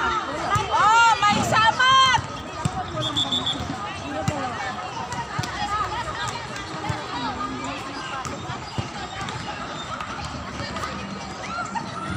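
Young women shout and chatter with excitement nearby, outdoors.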